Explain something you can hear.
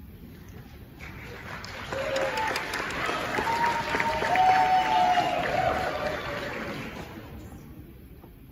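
A jazz band of saxophones and brass plays loudly in a large echoing hall.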